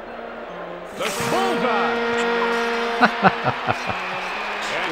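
A crowd roars and cheers after a goal.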